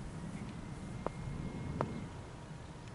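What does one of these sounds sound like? A cricket bat sharply strikes a ball.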